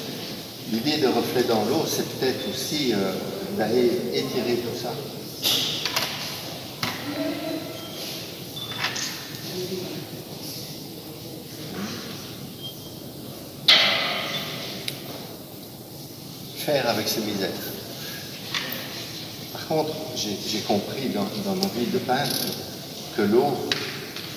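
An older man talks calmly, explaining as he goes.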